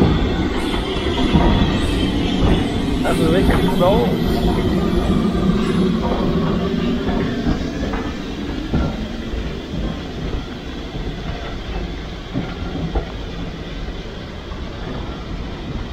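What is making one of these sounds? A steam locomotive hisses and chuffs steadily nearby, then fades.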